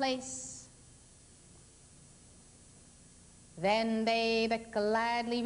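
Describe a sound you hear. A woman sings long, held notes into a microphone.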